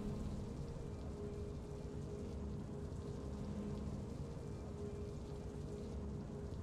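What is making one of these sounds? A game's victory music plays with low, steady held tones.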